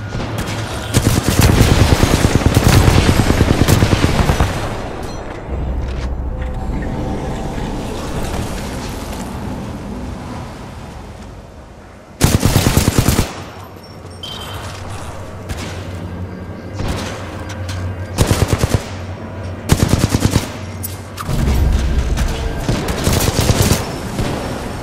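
Automatic gunfire rattles in rapid bursts.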